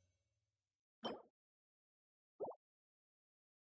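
Short bright chimes ring out.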